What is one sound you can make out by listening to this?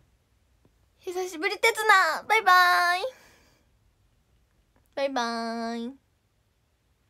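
A young woman speaks up close in a playful, sing-song voice.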